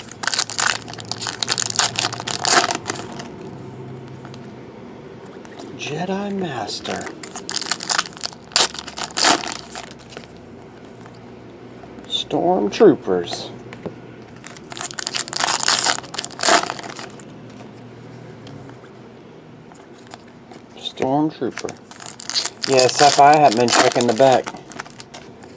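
Foil wrappers crinkle and rustle close by.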